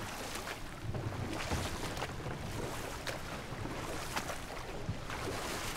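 Water laps and splashes against a rowing boat.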